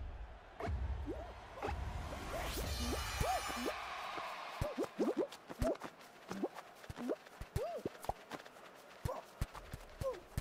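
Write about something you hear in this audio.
Cartoon figures squeak and bounce as they scramble forward.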